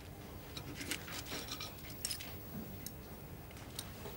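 A man cuts food with a knife on a plate.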